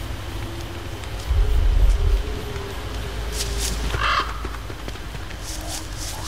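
Footsteps patter softly across dry ground.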